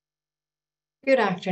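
A woman begins speaking calmly through an online call microphone.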